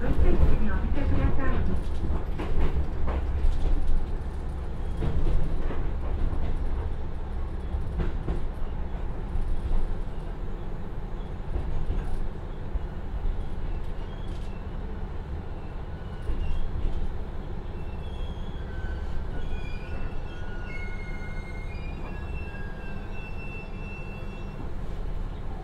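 A train's diesel engine rumbles steadily as the train slows down.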